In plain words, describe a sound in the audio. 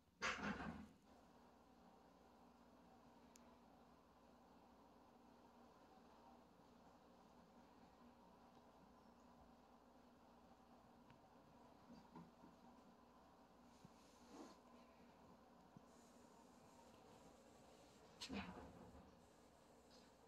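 A cat purrs softly and steadily.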